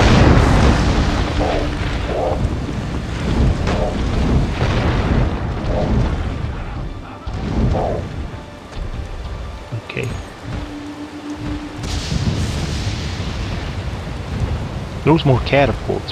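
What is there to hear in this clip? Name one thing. Heavy rain falls steadily.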